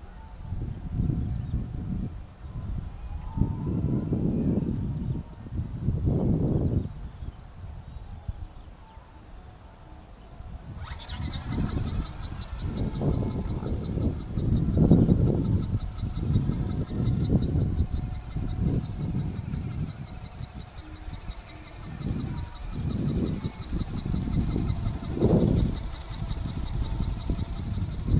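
Wind gusts rumble against the microphone outdoors.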